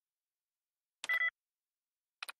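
A computer terminal gives a short, sharp beep.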